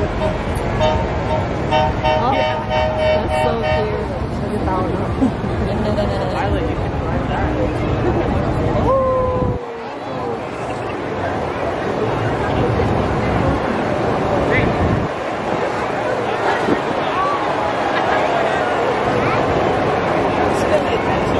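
A large outdoor crowd cheers and chatters.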